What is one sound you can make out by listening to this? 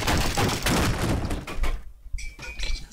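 Debris clatters onto a metal floor.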